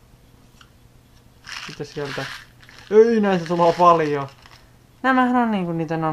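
A plastic candy wrapper crinkles as hands tear it open.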